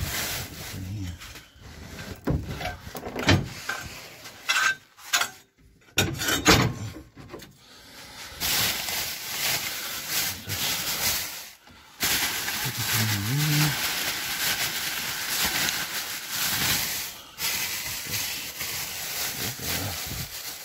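Plastic garbage bags rustle and crinkle.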